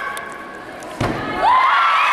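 A gymnast lands with a thud on a mat.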